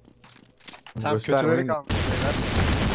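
A man speaks loudly into a close microphone.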